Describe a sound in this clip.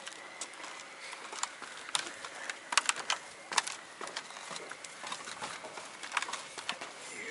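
Boots thud on wooden stairs.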